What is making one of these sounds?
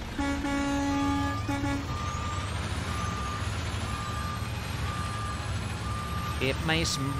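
A heavy truck engine rumbles low and steady.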